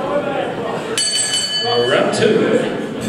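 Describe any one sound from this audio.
A bell rings once.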